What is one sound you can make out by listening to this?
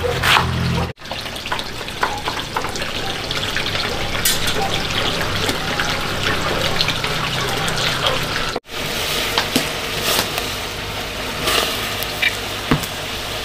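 Oil sizzles and crackles in a hot pot.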